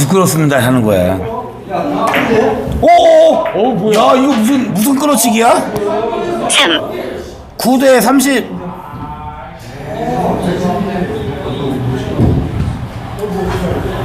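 Billiard balls clack against each other.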